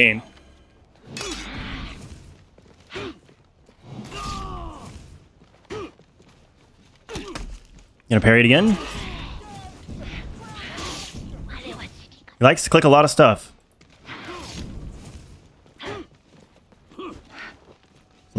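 Heavy blades clash and swish in a fight.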